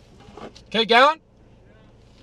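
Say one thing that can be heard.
A man speaks briefly up close.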